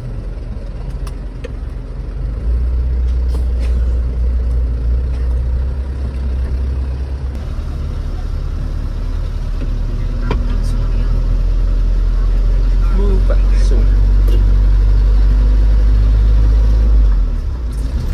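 A truck engine rumbles low and steadily, growing louder as the truck drives off.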